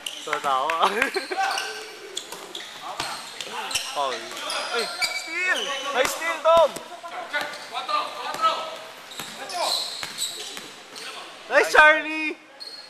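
A basketball thuds as it bounces on a hard floor.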